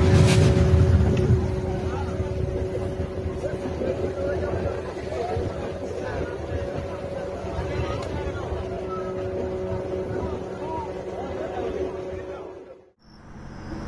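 Water churns and splashes behind a boat.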